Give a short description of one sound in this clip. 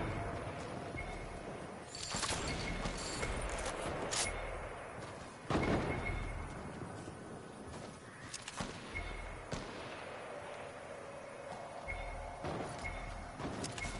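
Footsteps patter quickly across grass and dirt.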